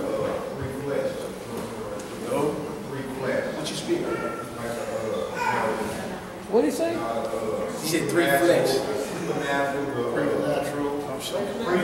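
A man speaks with animation in a large echoing room.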